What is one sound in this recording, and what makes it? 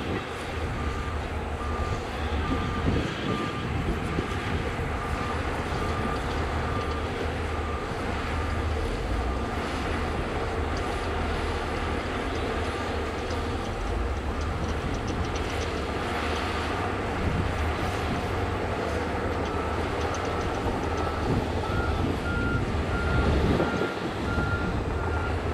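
A bulldozer engine rumbles steadily outdoors.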